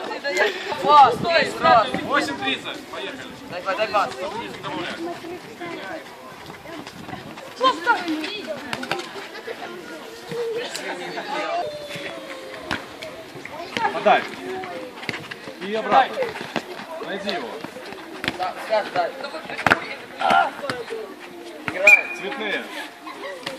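A football is kicked on a paved court.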